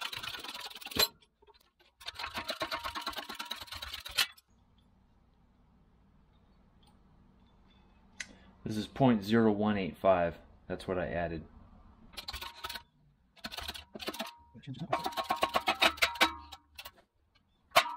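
Metal parts clank together.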